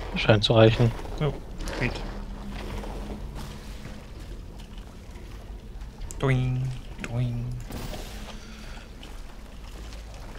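Thick liquid splatters and splashes onto hard surfaces.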